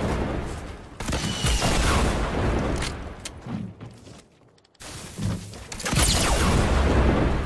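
An explosion booms loudly with a rumble.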